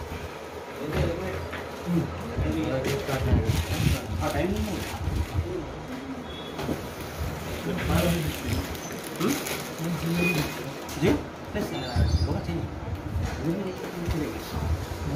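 Several men talk nearby.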